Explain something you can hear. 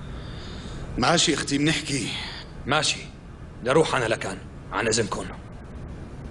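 A second man answers in a low voice nearby.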